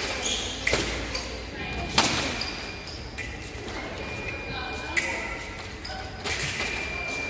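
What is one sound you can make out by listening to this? Fencers' shoes squeak and thud on the floor.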